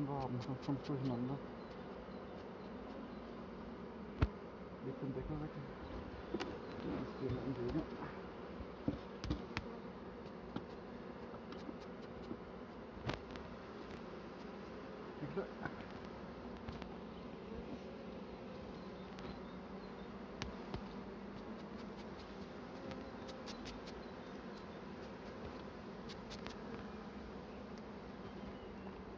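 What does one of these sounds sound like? Bees buzz steadily around an open hive.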